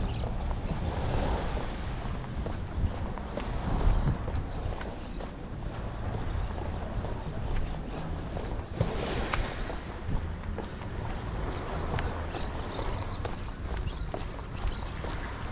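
Footsteps tap steadily on a paved path outdoors.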